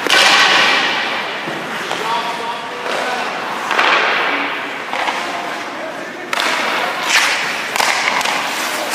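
Skate blades scrape across ice in a large echoing rink.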